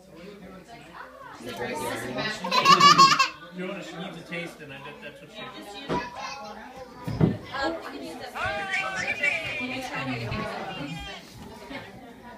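A baby babbles nearby.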